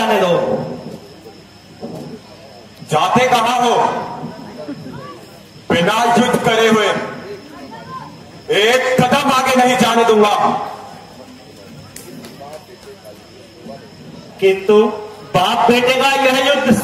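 A man declaims loudly and theatrically through a loudspeaker in an echoing hall.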